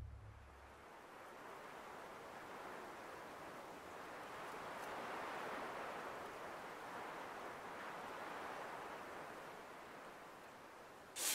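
Wind blows in steady, hissing gusts.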